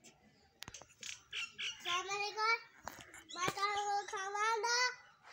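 A young boy sings loudly and close by.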